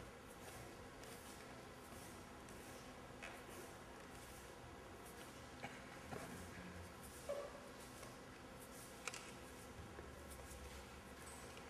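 Fabric rustles softly.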